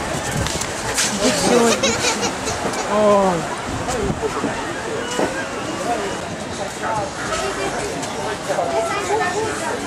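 Many people chatter and call out nearby outdoors.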